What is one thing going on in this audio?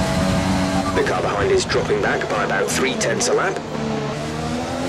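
Tyres screech as a racing car brakes hard into a corner.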